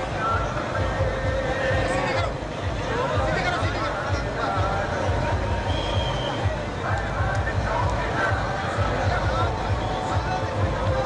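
Many people talk and shout all around.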